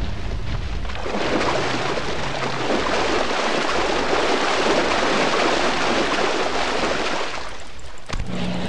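Water splashes as a large creature wades through it.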